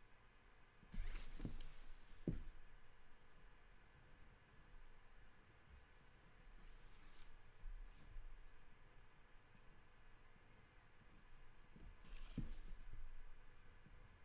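Paper rustles and slides as it is moved.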